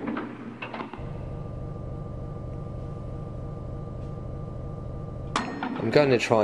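An elevator hums steadily as it moves through its shaft.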